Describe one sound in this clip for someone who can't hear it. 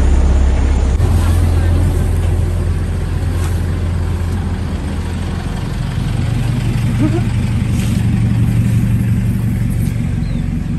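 A pickup truck engine runs close by as the pickup rolls past.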